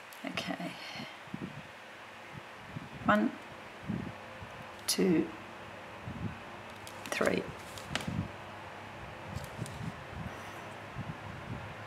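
Paper rustles softly under hands.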